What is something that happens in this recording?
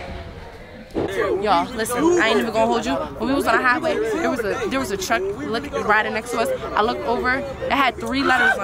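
A young woman talks close up, outdoors.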